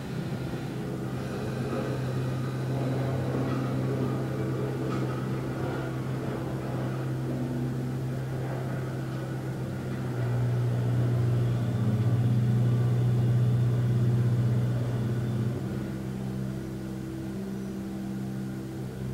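A man hums a low, steady drone that shifts in pitch now and then.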